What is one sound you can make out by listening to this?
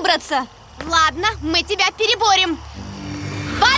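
A young woman speaks urgently.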